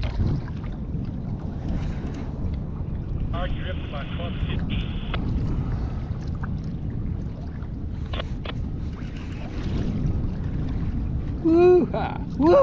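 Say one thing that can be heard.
Small waves lap against a kayak's hull.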